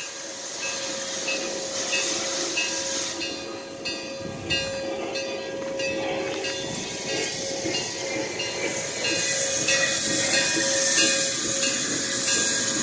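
A steam locomotive chugs closer with heavy rhythmic puffs.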